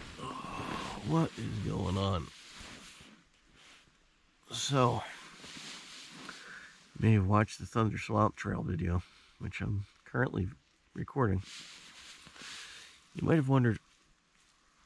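A man speaks calmly and quietly, close by, in short bursts.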